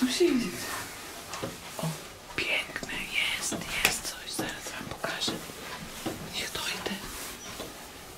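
Wooden boards knock and creak close by as a hatch is pushed open.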